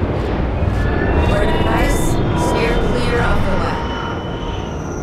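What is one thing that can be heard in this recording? A woman speaks briefly nearby.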